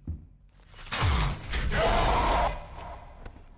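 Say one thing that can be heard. A monster lets out a loud, harsh screeching shriek.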